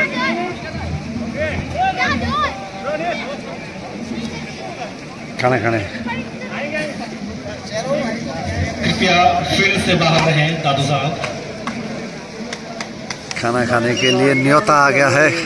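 A crowd of men talks and calls out nearby, outdoors.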